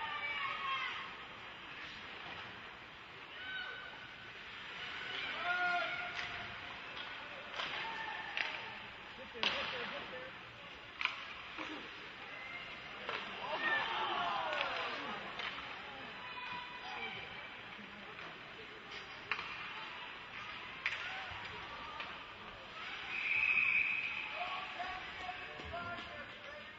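Spectators murmur and call out in the stands.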